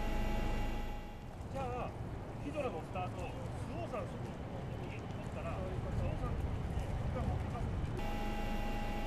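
Water laps gently against a half-sunken hull.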